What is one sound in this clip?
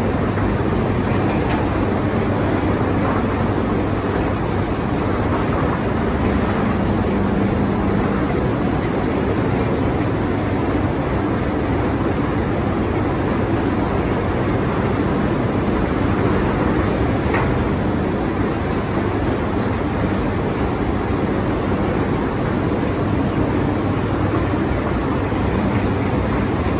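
A diesel tractor engine rumbles steadily close by.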